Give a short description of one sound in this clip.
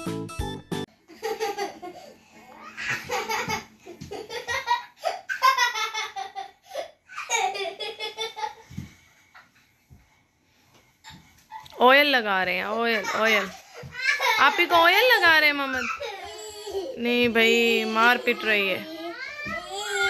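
A young girl laughs and squeals nearby.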